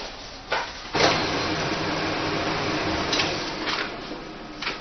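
A photocopier whirs steadily as it copies.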